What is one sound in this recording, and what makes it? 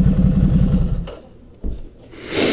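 A motorcycle engine cuts off and falls silent.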